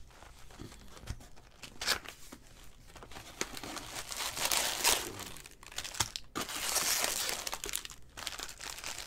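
Plastic wrap crinkles and rustles as hands handle packs.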